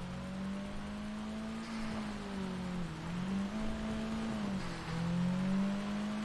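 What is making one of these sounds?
A car engine hums steadily, its pitch dipping and rising as it shifts gears.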